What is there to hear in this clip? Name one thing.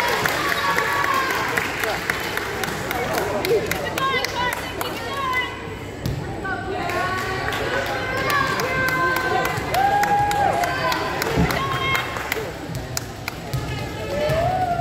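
Young women chatter and call out, echoing in a large hall.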